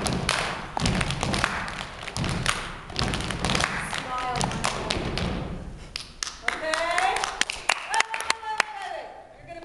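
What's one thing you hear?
Hands clap in rhythm in an echoing hall.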